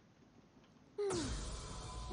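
A magic blast swoops down with a sharp whoosh.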